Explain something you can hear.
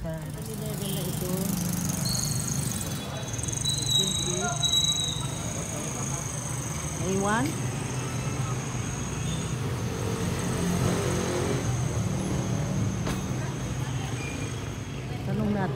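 Traffic rumbles steadily outdoors.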